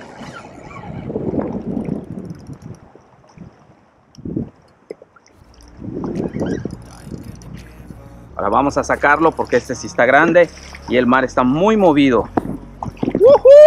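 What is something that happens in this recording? Water splashes against a kayak's hull.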